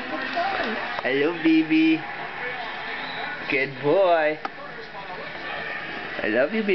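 A baby coos and squeals.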